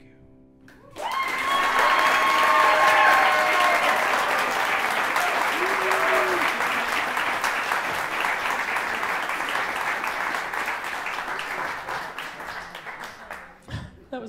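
A large audience applauds loudly and cheers.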